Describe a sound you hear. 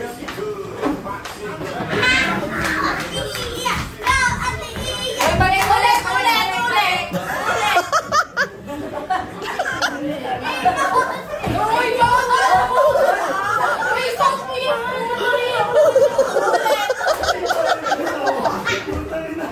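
A group of adults and children laugh, cheer and shout excitedly close by.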